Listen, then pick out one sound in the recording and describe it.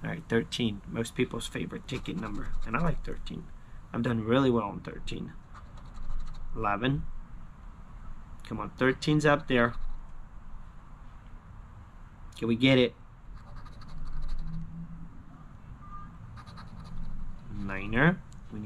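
A coin scratches across a paper card.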